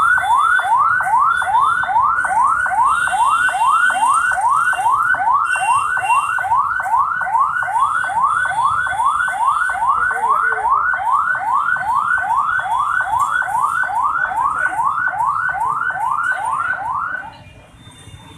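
An ambulance siren wails in rapid rising sweeps close by.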